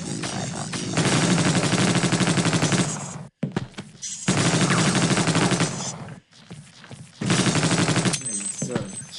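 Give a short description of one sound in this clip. A video game machine gun fires rapid bursts.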